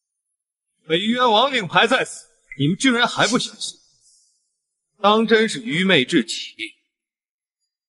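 A young man speaks with mockery, close by.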